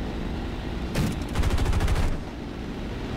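Machine guns fire a rapid burst.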